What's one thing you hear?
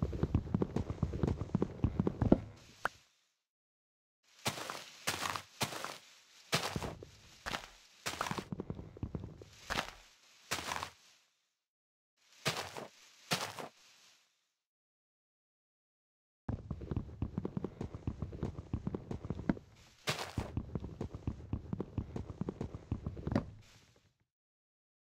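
Wooden blocks knock and crack as they break.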